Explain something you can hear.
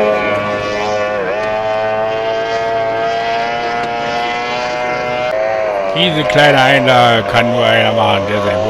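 A racing powerboat engine roars at high pitch, its pitch wavering and rising as the boat speeds across the water.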